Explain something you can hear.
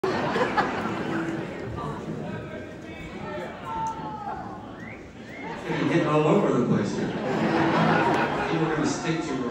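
A live band plays amplified rock music in a large echoing hall.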